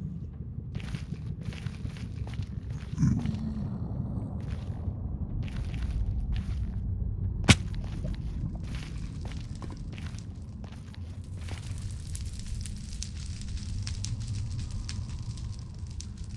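Footsteps crunch steadily on soft ground.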